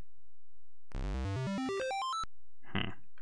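A buzzing electronic zap sweeps up in pitch from an old computer game.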